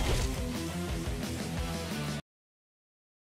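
Upbeat game music plays, then cuts off abruptly.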